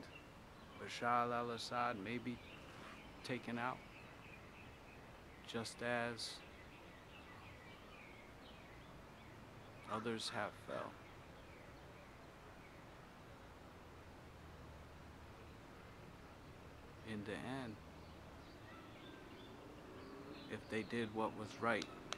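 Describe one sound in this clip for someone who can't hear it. A man speaks calmly close by, with long pauses.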